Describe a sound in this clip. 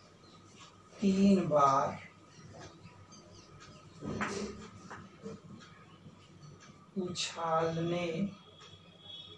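A man speaks calmly in short bursts nearby.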